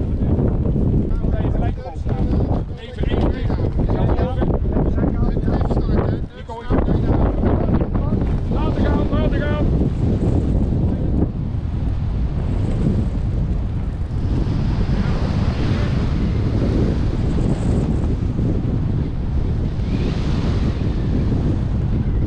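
Strong wind roars loudly across the microphone outdoors.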